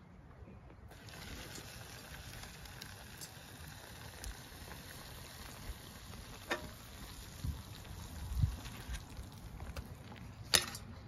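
Hot water pours steadily from a kettle into a cup.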